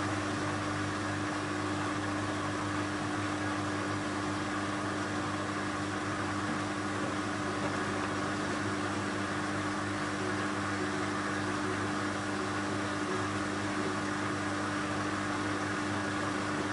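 Wet laundry sloshes and tumbles inside a washing machine drum.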